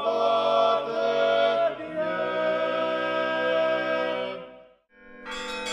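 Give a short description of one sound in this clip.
Young men sing together in chorus.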